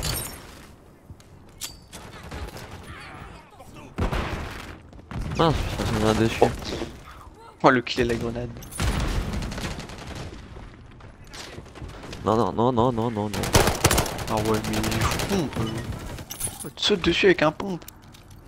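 Gunshots crack sharply a few times.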